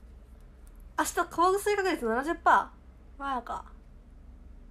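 A young woman speaks close to a microphone, with animation.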